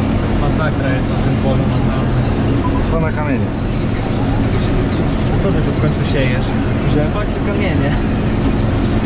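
A man talks calmly close by over the engine noise.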